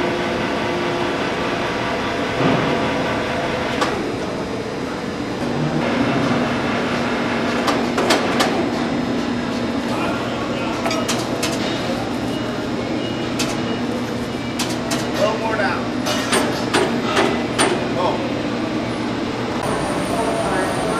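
Machinery hums steadily in a large echoing hall.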